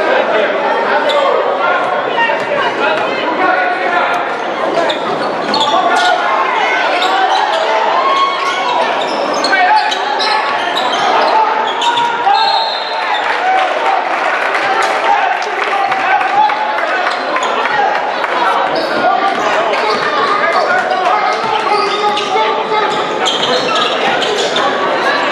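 A crowd of spectators cheers and chatters loudly in a large echoing gym.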